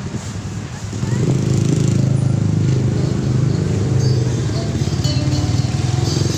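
A motorcycle engine putters nearby.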